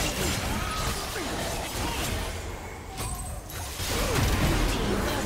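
Game spell effects crackle and whoosh in a fast fight.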